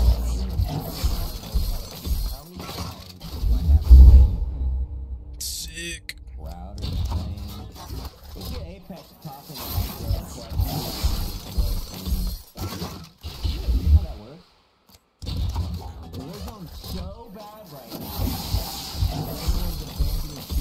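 Electricity crackles and zaps in bursts.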